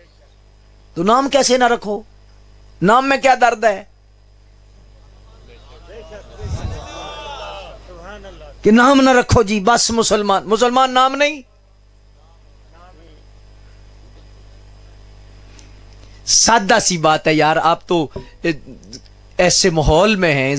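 A man preaches with passion through a microphone and loudspeakers, in bursts with pauses.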